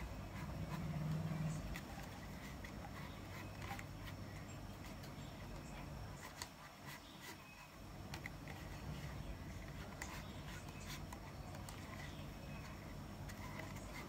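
Cord rustles and rubs softly as it is braided by hand.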